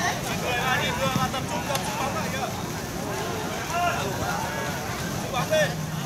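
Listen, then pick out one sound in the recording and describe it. Young men talk loudly close by.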